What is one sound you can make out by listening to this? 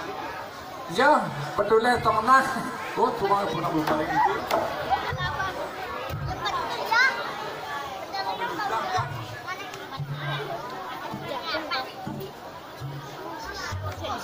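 A woman sings through a microphone over a loudspeaker.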